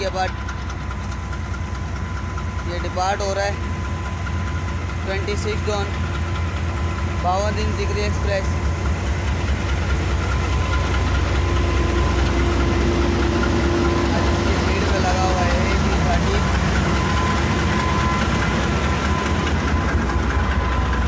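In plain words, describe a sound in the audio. A diesel locomotive engine rumbles steadily nearby.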